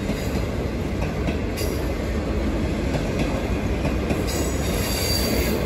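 A diesel locomotive engine drones as it approaches.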